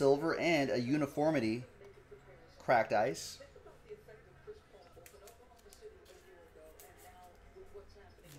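Trading cards rustle and click in a man's hands.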